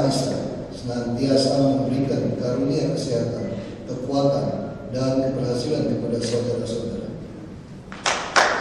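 A man reads out into a microphone, heard through loudspeakers in an echoing hall.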